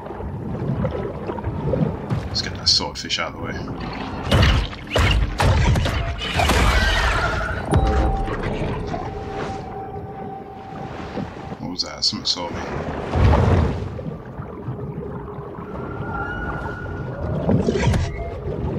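Underwater rushing and bubbling swirls steadily around a swimming creature.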